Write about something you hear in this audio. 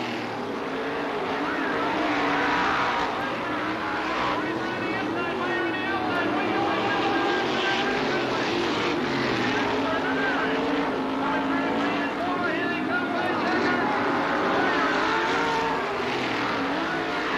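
A crowd cheers from the stands.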